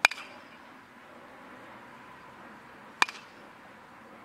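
A metal bat cracks sharply against a baseball, ringing briefly.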